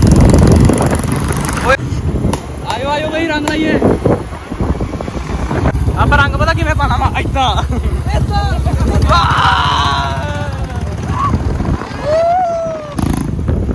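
Motorcycle engines rumble on the road.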